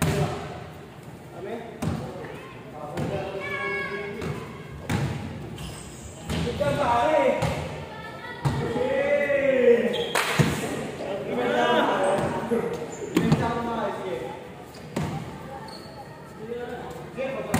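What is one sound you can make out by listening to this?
A basketball bounces on a hard floor with sharp thuds in a large echoing hall.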